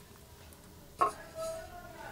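Metal clinks briefly.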